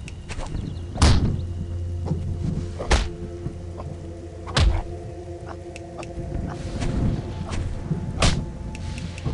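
Heavy blows thud and crack.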